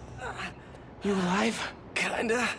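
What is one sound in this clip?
A young man asks a question close by.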